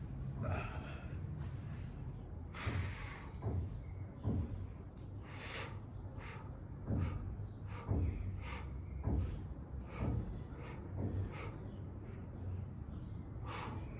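A man breathes out hard in short bursts close by.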